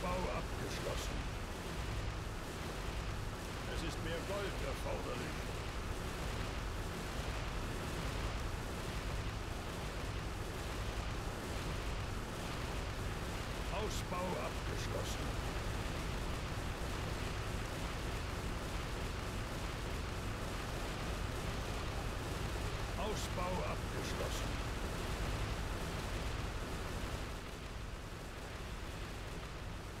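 Magical game effects crackle and hum steadily.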